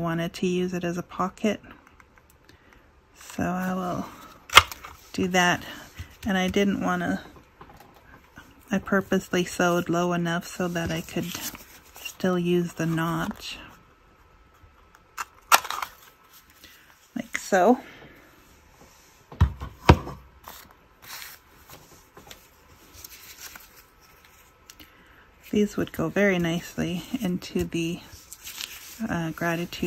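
Paper rustles and slides as it is handled.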